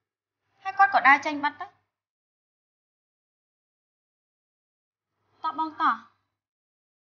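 A young woman speaks with emotion close by.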